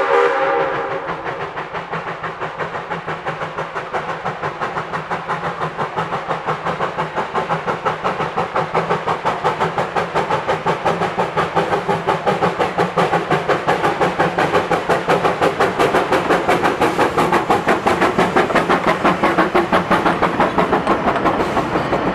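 A steam locomotive chuffs in a steady rhythm, drawing closer and growing louder.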